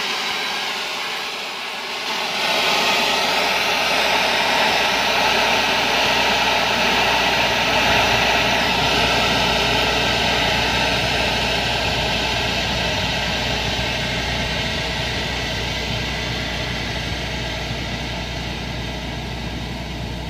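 A tunnel boring machine's cutter head grinds loudly against rock.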